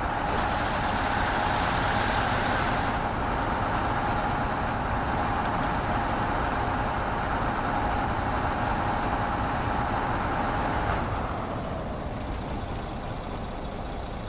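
Tyres crunch and churn through snow.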